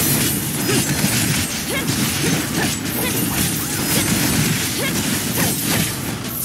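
Electric blasts crackle and zap in quick bursts.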